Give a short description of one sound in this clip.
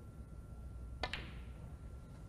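A cue strikes a snooker ball with a sharp click.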